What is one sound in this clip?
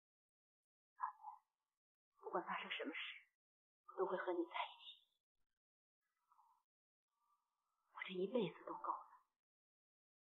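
A young woman speaks softly and tenderly close by.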